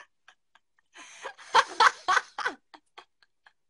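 A young woman laughs close to a phone microphone.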